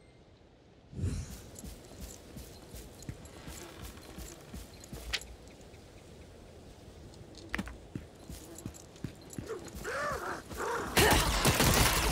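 Footsteps patter on a dirt path.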